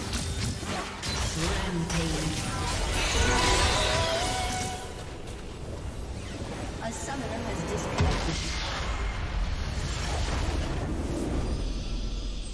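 Fighting sounds from a video game clash and crackle with spell blasts and hits.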